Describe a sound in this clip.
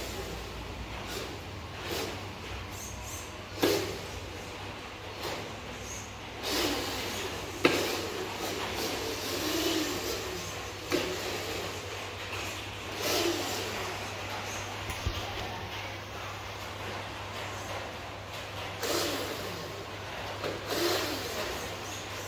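A toy truck's small electric motor whirs as it drives across a hard floor.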